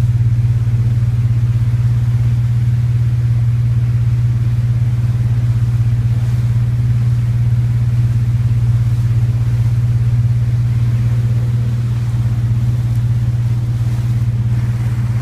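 Water splashes softly against a moving hull.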